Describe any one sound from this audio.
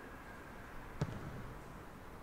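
A rugby ball is kicked with a sharp thud.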